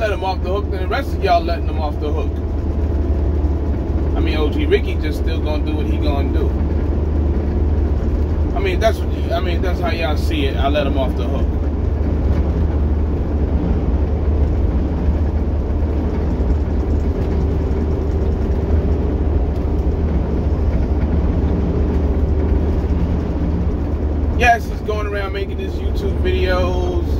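A truck engine drones low and steady inside the cab.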